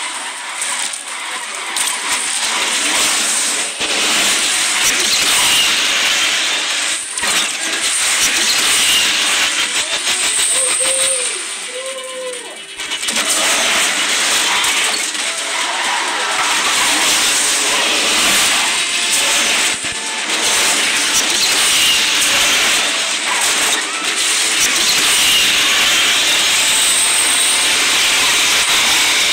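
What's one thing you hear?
Tyres screech as a car drifts in a racing video game.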